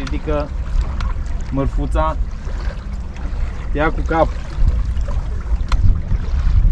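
Small waves slap against a boat's hull.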